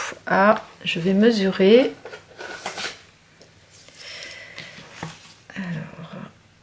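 Stiff paper cards rustle and slide as they are handled.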